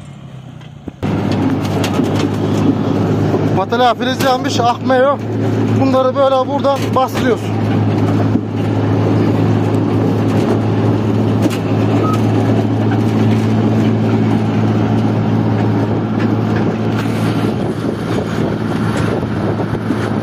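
Stones rattle and clatter in a metal hopper.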